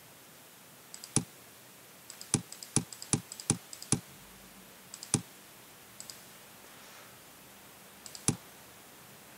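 Sharp computer mouse clicks sound several times.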